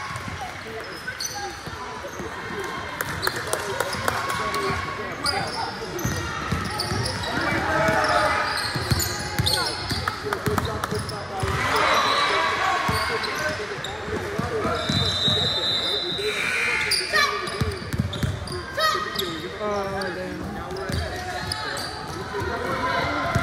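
Young women shout and call out to each other across an echoing gym.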